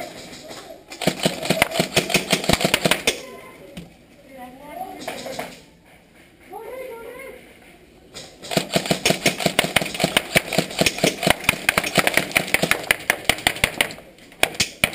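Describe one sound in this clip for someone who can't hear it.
An electric airsoft rifle fires in rapid bursts.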